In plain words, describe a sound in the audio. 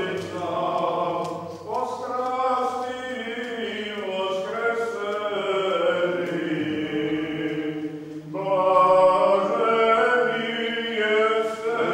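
A group of women and men sing a slow chant together in an echoing hall.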